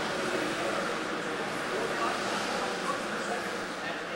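Race car engines roar faintly through glass.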